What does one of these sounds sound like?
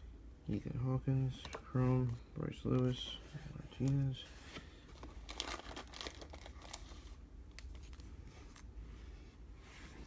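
Trading cards slide and rustle between fingers.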